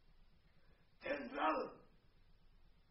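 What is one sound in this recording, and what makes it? A man cries out loudly, heard from a distance in a large hall.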